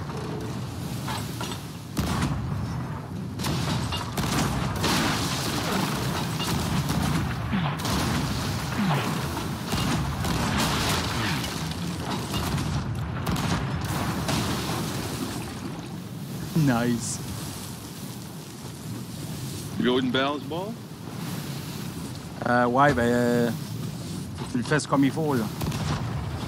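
Rough sea waves roar and crash steadily.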